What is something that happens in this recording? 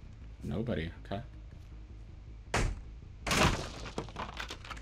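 Wooden planks crash and splinter as they are smashed.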